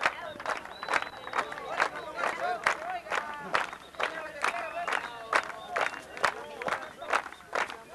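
A crowd of children shouts and cheers outdoors.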